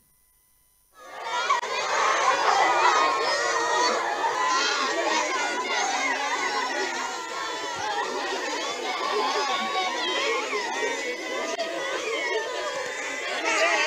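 A crowd of children shout and talk anxiously outdoors.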